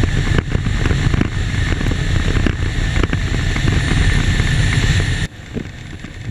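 Wind roars loudly past a speeding vehicle.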